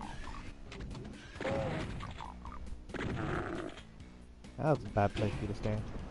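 A monster growls and screams as it dies.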